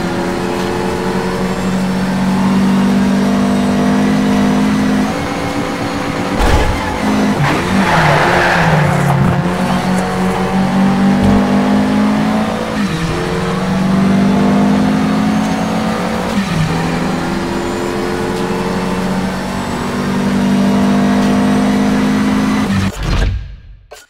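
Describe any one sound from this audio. A race car engine roars and revs up through the gears.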